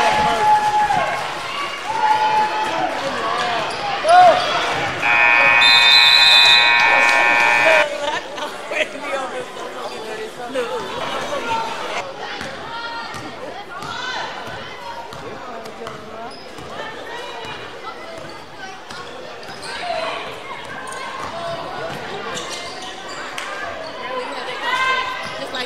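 Voices of a crowd chatter and call out in an echoing gym.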